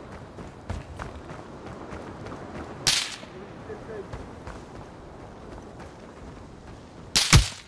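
Footsteps crunch on hard ground as a soldier moves.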